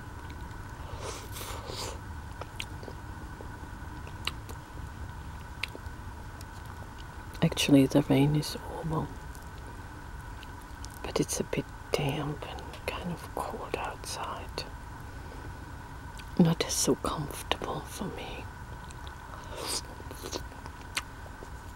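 A woman eats with wet, smacking mouth sounds close to a microphone.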